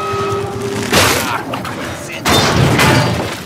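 Heavy metal crashes and clangs loudly.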